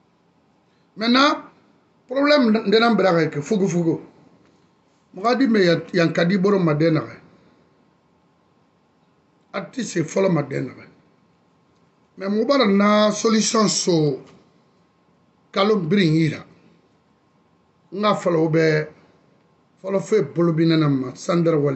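A middle-aged man speaks close to a phone microphone, with pauses between phrases.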